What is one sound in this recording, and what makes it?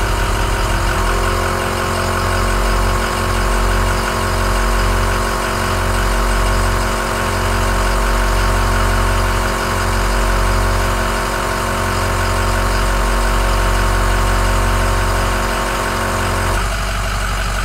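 An air-powered tool whirs steadily against a wheel.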